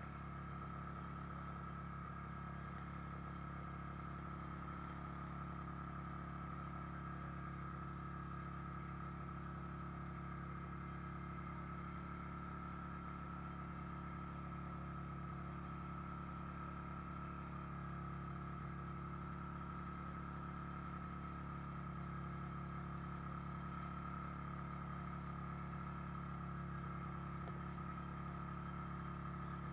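A snowmobile engine drones steadily up close.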